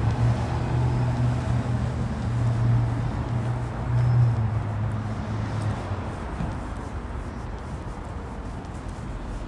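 City traffic rumbles along a street outdoors.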